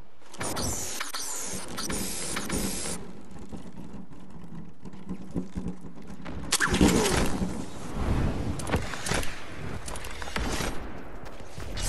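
Wind rushes past as a figure glides down through the air.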